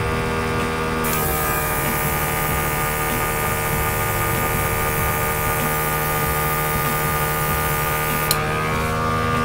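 An airbrush hisses as it sprays paint.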